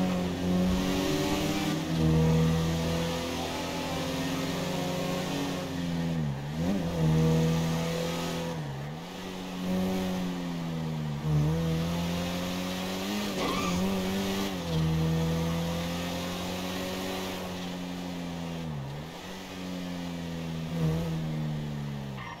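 A car engine revs high and drops briefly at each gear shift.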